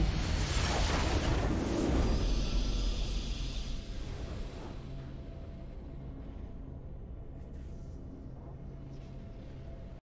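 A bright fanfare swells to celebrate a win.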